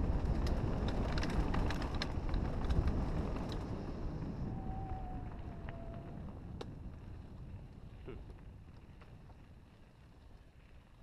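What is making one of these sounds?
Wind rumbles against the microphone, louder at first and slowly fading.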